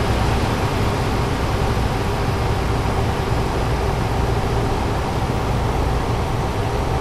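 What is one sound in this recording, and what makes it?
A truck engine hums steadily while driving at speed.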